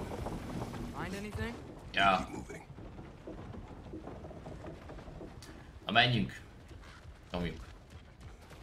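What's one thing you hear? A young man talks into a close microphone in short, casual bursts.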